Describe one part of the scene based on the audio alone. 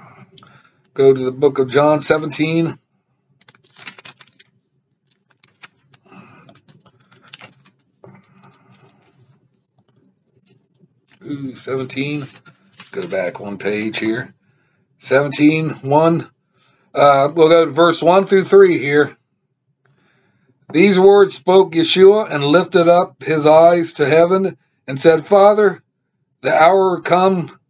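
A man speaks calmly and close to a microphone, in bursts with pauses.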